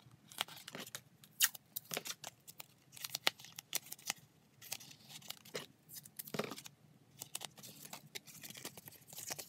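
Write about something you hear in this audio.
Paper sheets rustle and crinkle as hands handle them.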